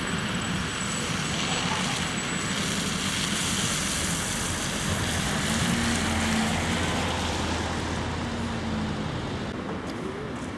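Tyres hiss on a slushy road as a car drives past.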